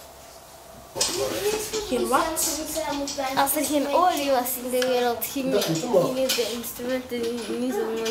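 A young girl speaks calmly and cheerfully close by.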